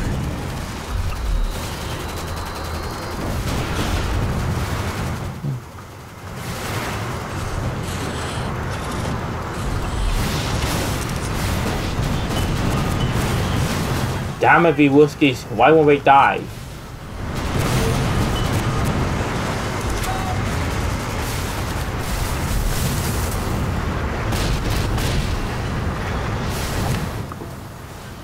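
Game explosions boom and rumble.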